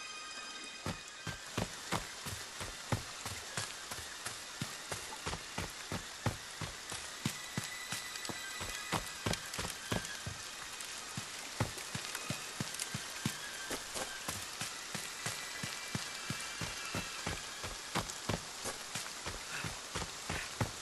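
Footsteps run quickly through dry leaves and brush.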